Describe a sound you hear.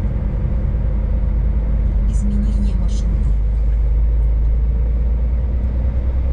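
A truck drives past close by with a deep rumble.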